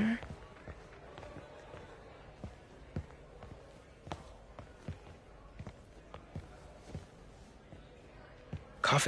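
Footsteps tap on a hard wooden floor in a large echoing hall.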